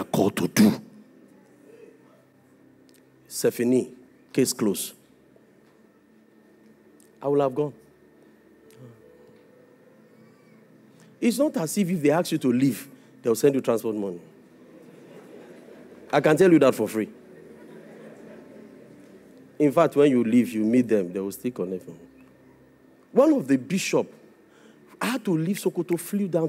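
A man preaches with animation through a microphone, with pauses between phrases.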